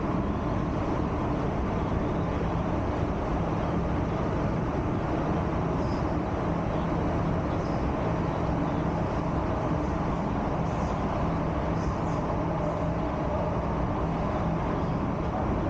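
A subway train rumbles and roars steadily along the tracks.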